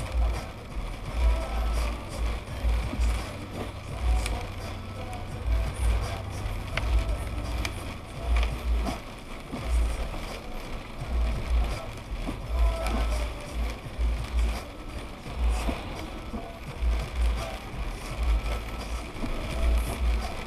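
Rain patters on a car windshield.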